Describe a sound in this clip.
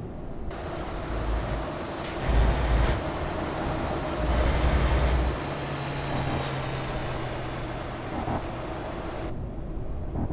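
Tyres roar on an asphalt road.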